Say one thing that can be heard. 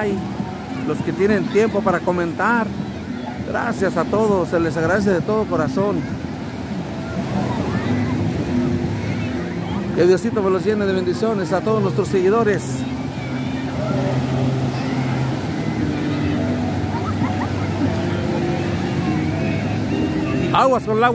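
A crowd of people chatters in the distance outdoors.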